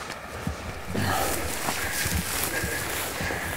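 Footsteps swish through dry brush.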